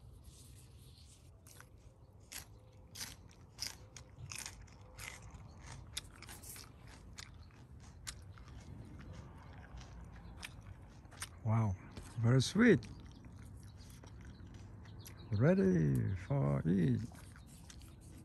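Leaves rustle as a hand picks pea pods.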